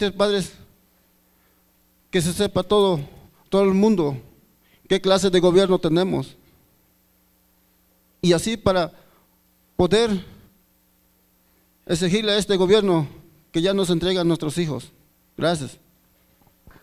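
A middle-aged man speaks with emotion into a microphone, with pauses, over a loudspeaker.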